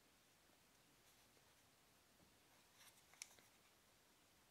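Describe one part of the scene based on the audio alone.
A plastic keyboard clicks and rattles as hands turn it over.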